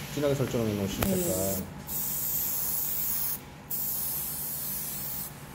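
An airbrush hisses in short bursts of spraying air.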